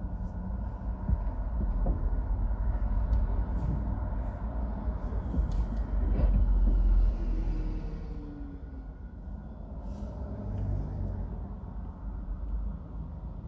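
Tyres roll on a wet road.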